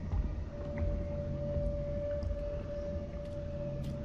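Small footsteps patter on a hard floor.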